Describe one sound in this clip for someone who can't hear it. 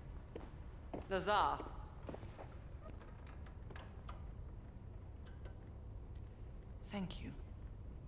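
A young woman speaks briefly and softly, close by.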